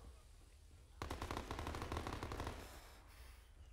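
A smoke grenade hisses loudly.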